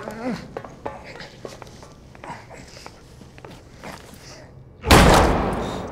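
A body drags across a hard floor.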